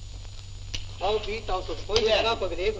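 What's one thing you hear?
A young man sings loudly.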